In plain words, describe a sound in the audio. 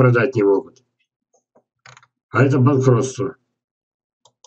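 An elderly man speaks calmly through an online call microphone.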